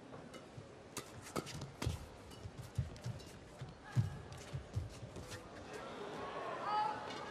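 Shoes squeak on a court floor.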